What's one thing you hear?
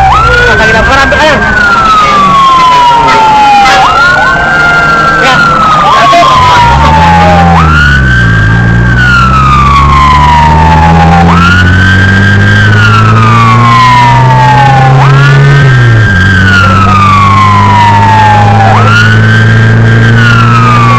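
A siren wails loudly, rising and falling over and over.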